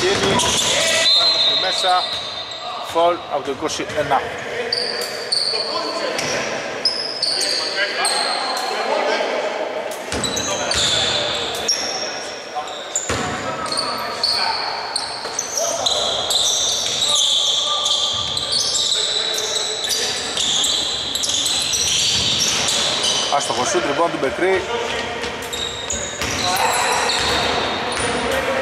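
Men shout and call out to one another across the court.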